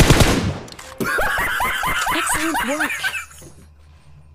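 A young man shouts excitedly into a headset microphone.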